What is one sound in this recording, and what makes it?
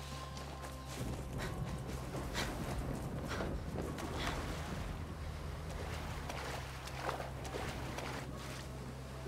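Water splashes and churns as someone swims.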